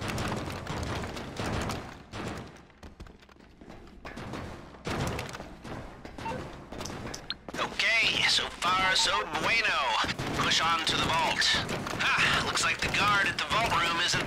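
Footsteps tap on a hard floor in an echoing tunnel.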